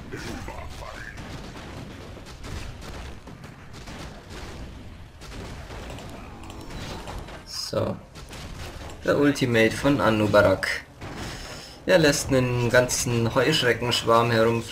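Weapons clash in a fierce fight.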